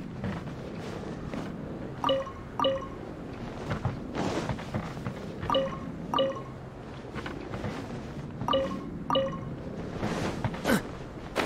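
Footsteps thud on wooden boards.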